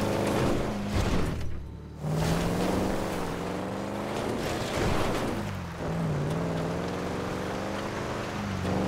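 Tyres crunch over loose gravel.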